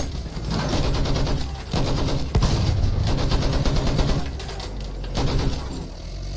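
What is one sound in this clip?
A light tank's engine rumbles as it drives.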